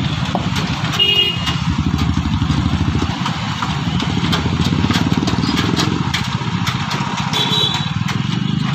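Horns beep briefly nearby.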